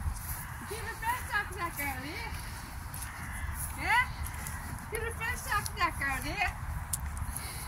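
A woman talks gently nearby.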